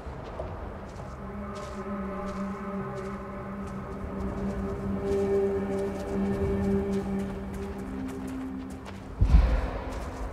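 A spacecraft engine hums loudly as it comes in to land.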